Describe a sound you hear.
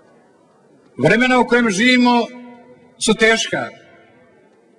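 A man speaks loudly through a loudspeaker outdoors.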